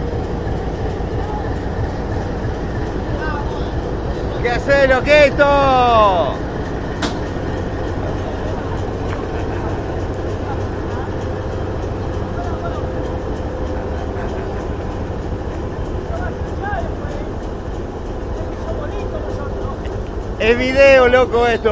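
A diesel locomotive engine rumbles steadily as it rolls slowly past close by.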